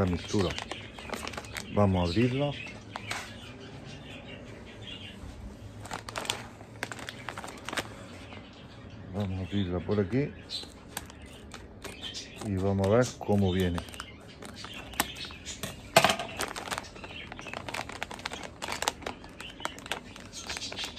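A plastic packet crinkles as hands handle it.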